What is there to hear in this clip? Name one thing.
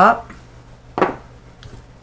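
Small stones clink together.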